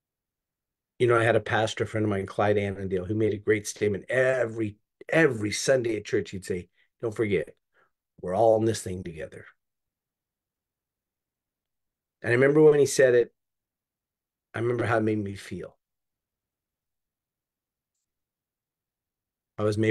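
An older man speaks calmly and thoughtfully over an online call, with pauses.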